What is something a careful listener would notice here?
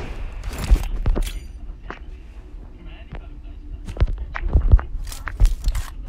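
Gunshots crack in short, sharp bursts.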